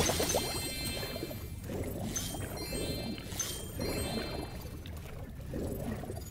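Bright chimes ring out as small treasures are collected.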